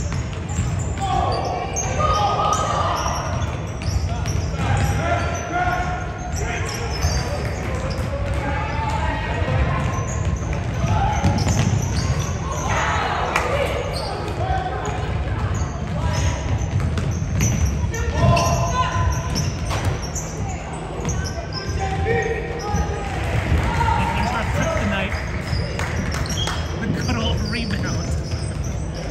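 A basketball bounces with hollow thuds.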